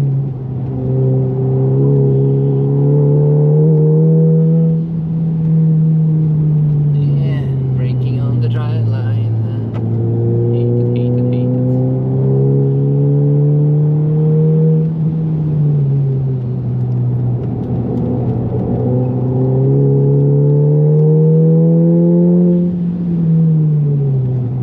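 A car engine roars loudly, revving up and dropping back as gears change.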